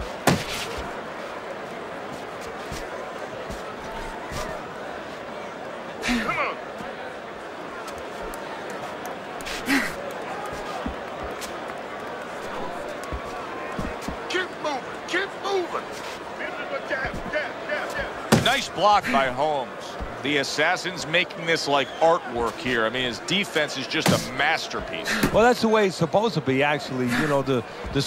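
A large crowd murmurs steadily in the distance.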